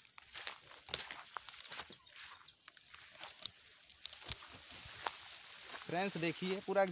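Grass rustles and brushes close by.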